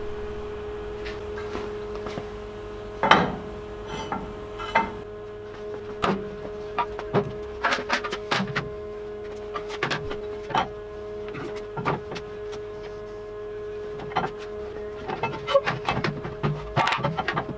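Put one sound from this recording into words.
Metal parts clank and knock as a man handles them.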